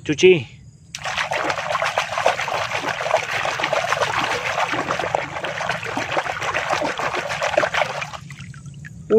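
Hands swish and squelch through wet foamy slush.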